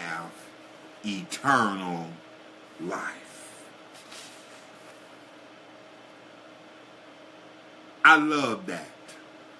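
An older man speaks calmly and close by, in short phrases with long pauses.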